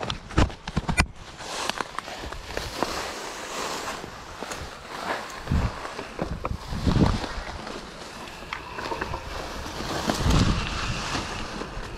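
Tyres crunch through dry leaves and dirt.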